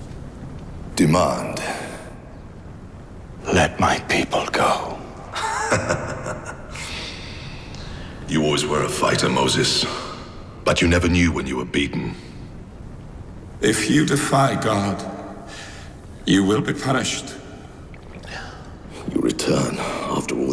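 A man with a deep, rough voice speaks intensely and close by.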